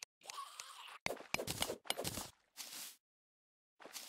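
A pickaxe chips at stone with short, sharp knocks.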